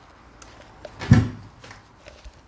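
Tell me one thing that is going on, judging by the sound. A hand bumps a plastic object with a dull thud.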